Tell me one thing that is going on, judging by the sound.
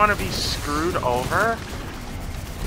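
Rapid gunfire blasts close by.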